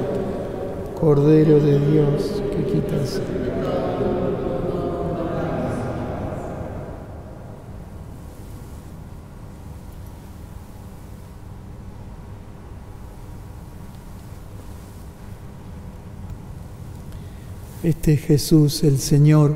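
A middle-aged man chants in a sung voice through a microphone in a large echoing hall.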